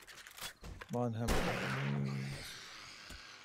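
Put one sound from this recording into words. A zombie groans and snarls nearby.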